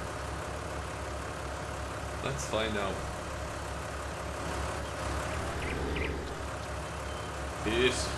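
A tractor engine hums steadily at idle.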